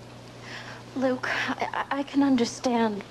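A young woman speaks softly and with emotion, close by.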